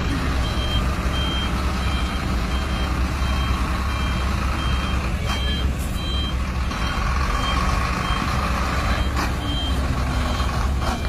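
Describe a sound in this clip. A heavy truck engine rumbles steadily as the truck slowly moves.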